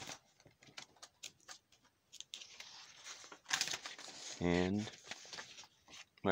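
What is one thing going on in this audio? Paper pages rustle as a page is turned.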